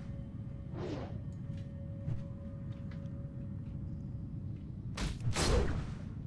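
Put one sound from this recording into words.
Weapon blows thud against a large creature.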